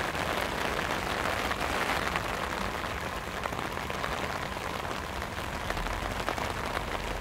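Rain falls steadily outdoors, pattering on wet pavement.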